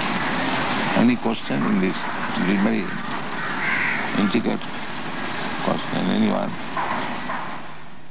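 An elderly man speaks calmly, heard through an old, hissy recording.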